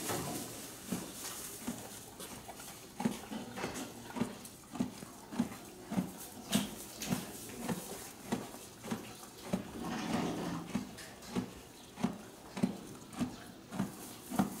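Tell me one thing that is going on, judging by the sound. A horse munches feed with steady, rhythmic crunching.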